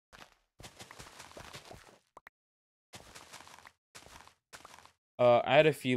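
Blocks of dirt crunch as they are dug away.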